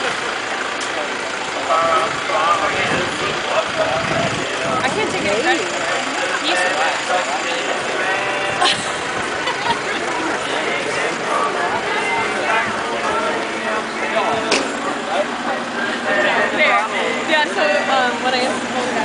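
Many people chatter outdoors.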